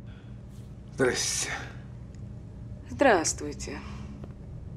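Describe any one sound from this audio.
A man speaks briefly in a raised voice.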